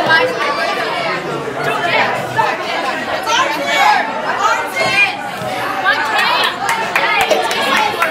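Plastic cups clatter on a table.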